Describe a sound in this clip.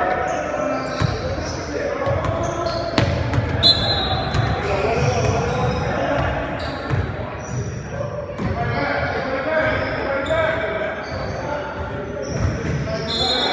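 A basketball bounces on a wooden floor with dull thumps.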